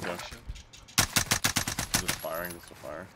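A rifle fires a rapid string of loud shots.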